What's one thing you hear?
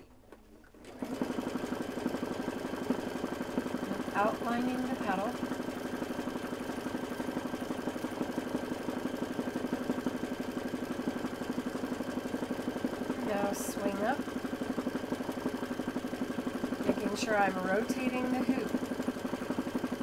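A sewing machine runs with a steady, fast whirring hum.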